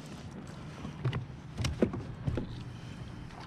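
A fish thumps and flaps against a kayak.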